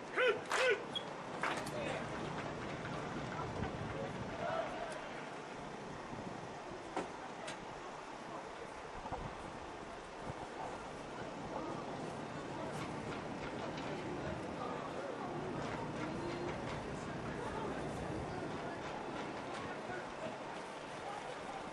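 A crowd murmurs and cheers across an open outdoor field.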